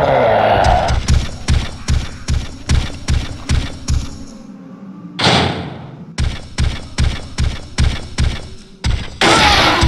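Heavy footsteps thud at a steady pace.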